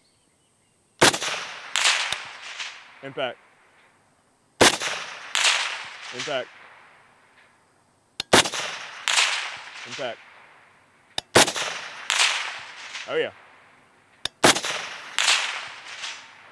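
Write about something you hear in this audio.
A rifle fires loud shots that echo across open ground.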